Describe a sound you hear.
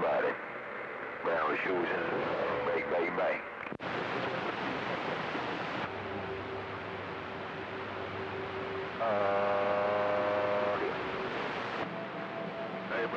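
Static hisses steadily from a radio receiver.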